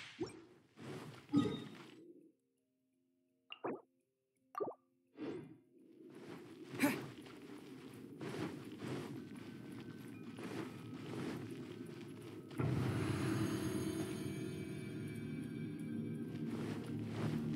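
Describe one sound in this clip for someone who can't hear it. Footsteps run quickly across a hard stone floor.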